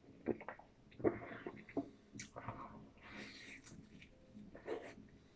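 A man bites into a soft sandwich.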